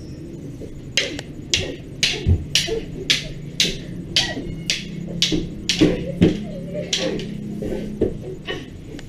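Wooden sticks clack together in a rapid series of sharp knocks.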